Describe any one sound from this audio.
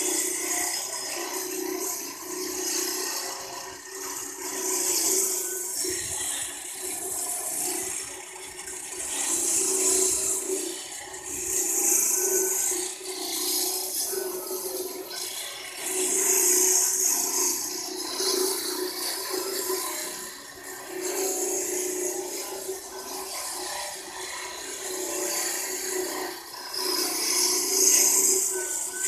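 A walk-behind concrete saw runs, cutting a joint into a concrete floor.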